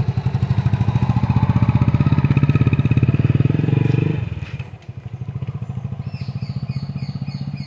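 A motorcycle engine revs and rides away, fading into the distance.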